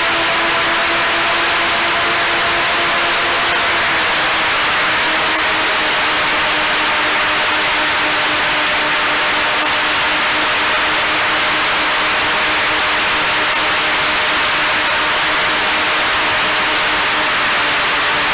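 Wind rushes past the microphone.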